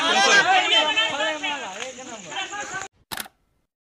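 A crowd of men shouts and chants loudly, close by.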